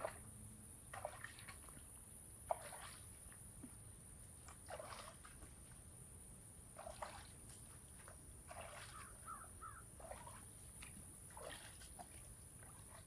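Water splashes as someone wades through shallow water with heavy steps.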